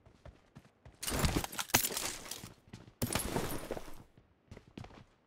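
A game character picks up gear with rustling clicks.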